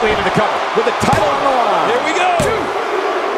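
A referee slaps the mat with a hand in loud thumps.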